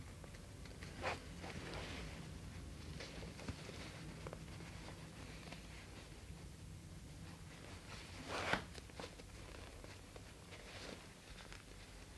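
A zipper rasps in short pulls.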